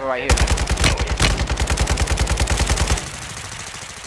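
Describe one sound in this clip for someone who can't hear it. A rifle fires a rapid, loud burst of shots.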